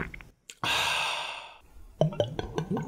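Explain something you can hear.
A young man exclaims excitedly, close by.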